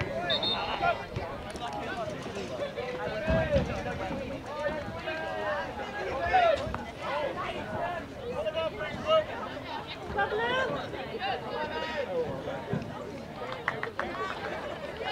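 Young men shout and call to each other across an open outdoor field.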